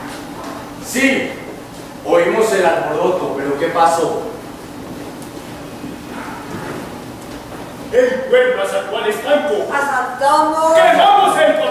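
A group of adult actors call out loudly in a large hall.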